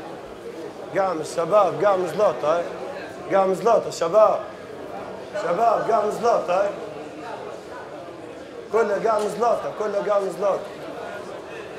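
A man shouts commands loudly in an echoing hall.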